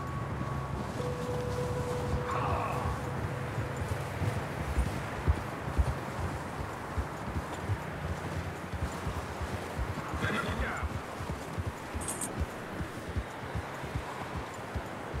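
Horses' hooves crunch through deep snow.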